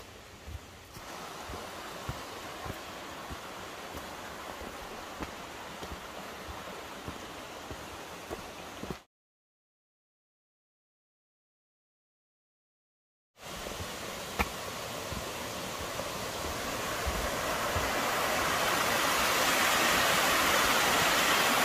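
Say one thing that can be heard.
A mountain stream rushes over rocks.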